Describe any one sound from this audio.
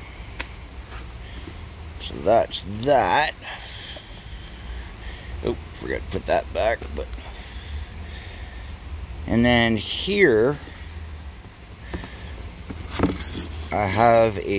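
A cardboard box scrapes and rustles as hands handle it.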